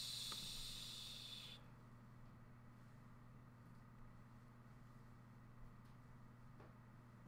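A young man speaks calmly and close, heard through a webcam microphone.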